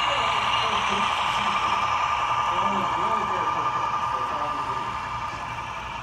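A model train engine hums and whines loudly as it passes close by.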